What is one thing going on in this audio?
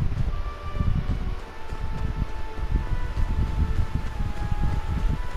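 Footsteps crunch through snow at a steady walking pace.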